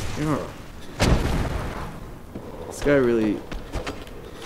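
A sword strikes with a heavy thud.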